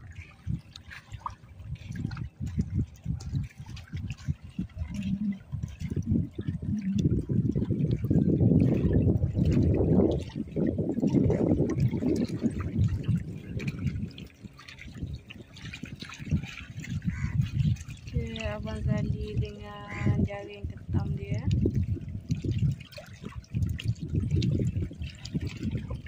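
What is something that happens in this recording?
Wind buffets the microphone outdoors by open water.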